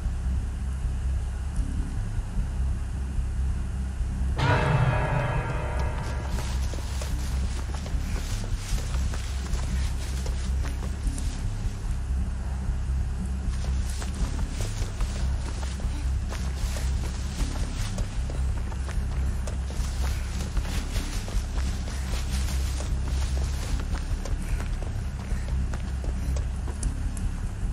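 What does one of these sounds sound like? Footsteps crunch over dry ground.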